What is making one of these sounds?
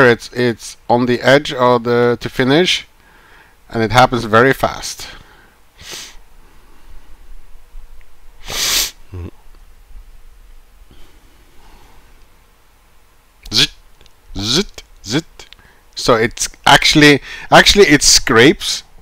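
A man talks calmly and close to a microphone, in bursts with pauses.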